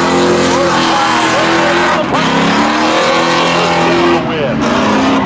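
Car tyres squeal as they spin on the track.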